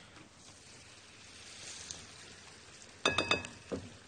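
A metal spoon clinks against a saucepan.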